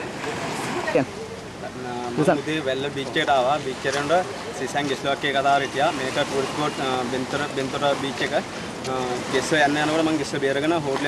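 A man speaks close to a microphone in an earnest voice.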